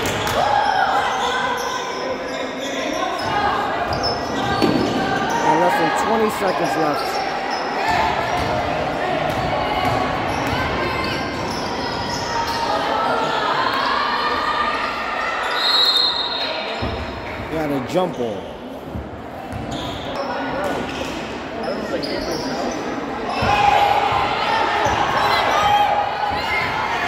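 A crowd of spectators talks loudly in a large echoing gym.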